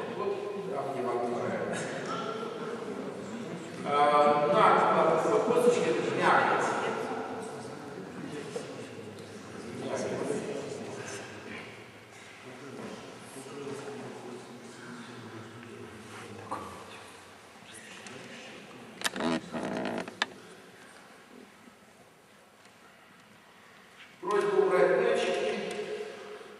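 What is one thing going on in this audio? A man talks with animation in an echoing hall.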